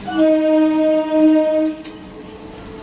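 A train horn blares loudly up close.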